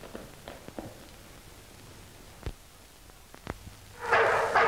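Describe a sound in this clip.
Footsteps knock slowly on a hard floor.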